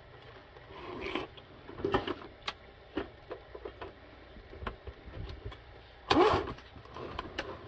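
Hard plastic cases knock and clunk as they are handled and lifted.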